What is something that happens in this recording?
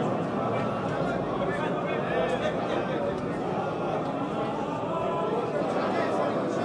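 A crowd of men talks and murmurs loudly in an echoing room.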